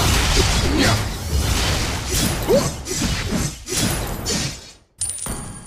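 Game sound effects clash and whoosh during a fight.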